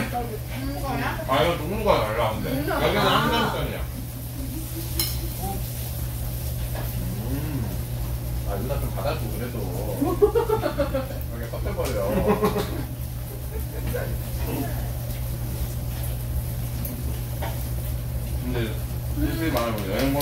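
Young men and women laugh together.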